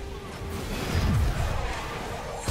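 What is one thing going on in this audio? A blast bursts with a sharp crack.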